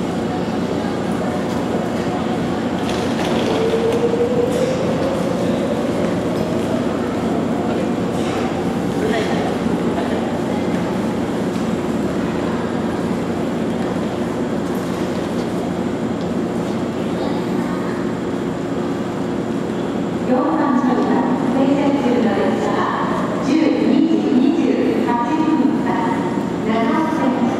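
An electric express train hums steadily while it stands at a platform.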